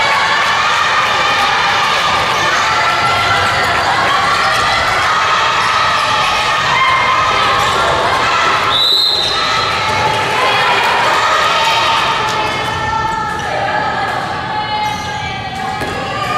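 A crowd of young girls shouts and cheers loudly in a large echoing hall.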